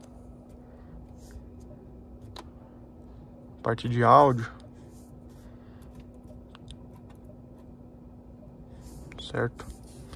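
A finger taps lightly on a touchscreen.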